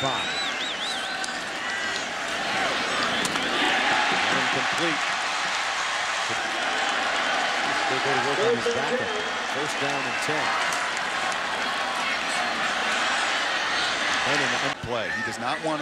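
A large stadium crowd roars and cheers steadily.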